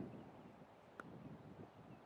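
A bat knocks a ball with a sharp crack.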